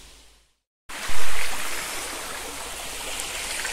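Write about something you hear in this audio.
Shallow water flows over a stream bed.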